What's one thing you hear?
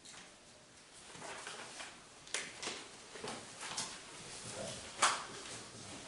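Papers rustle and flip close by.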